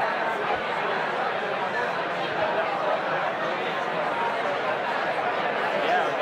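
An elderly man speaks to an audience through a microphone in a large room.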